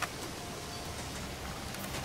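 Water pours from a pipe into a pool below.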